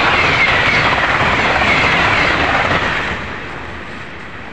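A high-speed train rushes past with a loud roar of wind.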